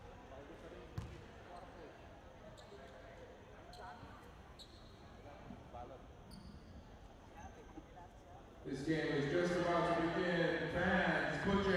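Sneakers squeak on a wooden court floor in a large echoing hall.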